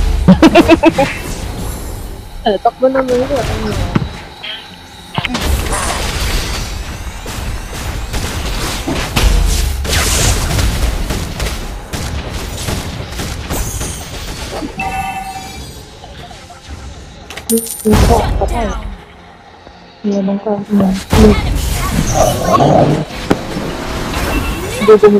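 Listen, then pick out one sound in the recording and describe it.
Video game battle effects clash, zap and blast.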